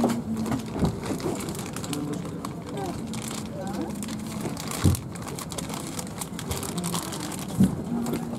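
A crowd of passengers chatters in a low murmur nearby.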